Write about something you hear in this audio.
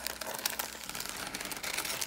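Scissors snip through a plastic wrapper.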